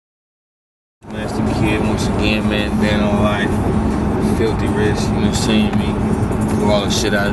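A young man talks up close.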